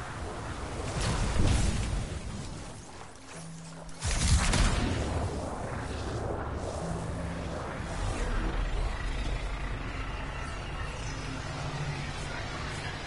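A jet thruster roars and whooshes in bursts.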